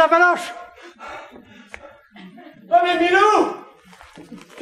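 A man speaks in a loud, exaggerated, sing-song voice in an echoing room.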